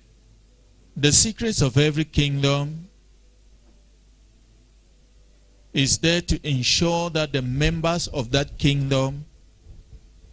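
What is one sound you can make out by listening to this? A man preaches with animation into a microphone, heard through loudspeakers, pausing between phrases.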